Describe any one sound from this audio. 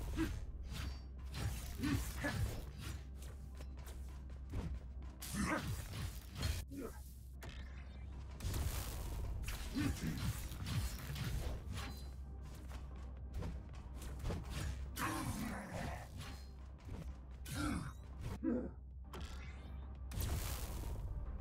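Electric energy crackles and buzzes.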